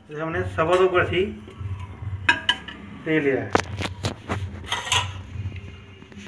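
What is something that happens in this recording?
A metal ladle clinks and scrapes against a metal pot.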